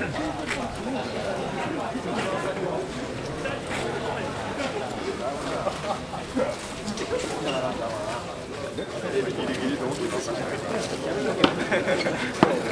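A crowd of men chants and calls out together outdoors.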